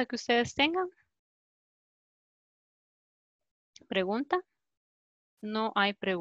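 A woman speaks with animation through an online call, in short bursts with pauses.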